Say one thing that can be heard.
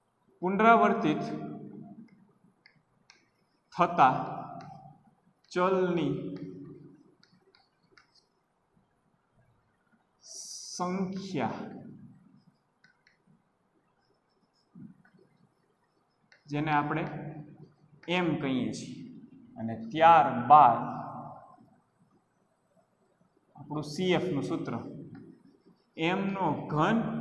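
A young man speaks calmly in short bursts, close by.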